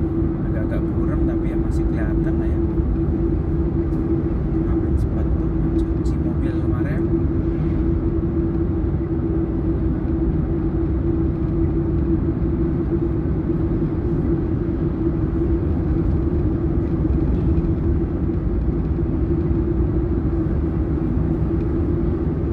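A car engine hums steadily while driving on a highway.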